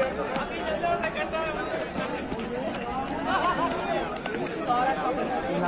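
A crowd of young people chatters and calls out nearby outdoors.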